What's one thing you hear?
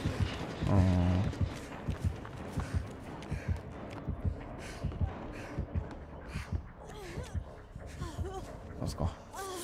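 Quick footsteps run over rough ground and through rustling grass.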